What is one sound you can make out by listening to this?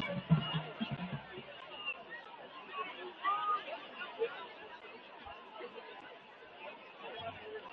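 A crowd chatters and cheers outdoors at a distance.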